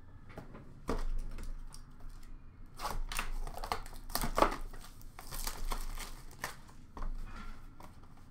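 Hands handle a cardboard box.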